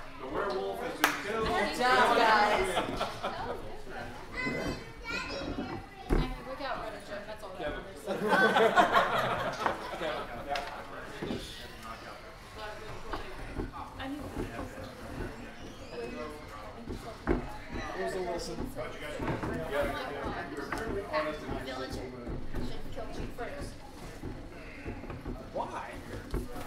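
A man reads out aloud to a small audience.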